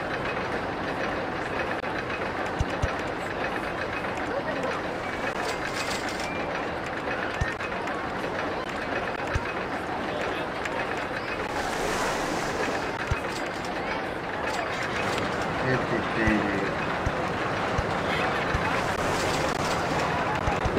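Roller coaster cars rattle along their tracks.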